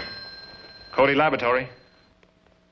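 A man speaks briefly into a telephone.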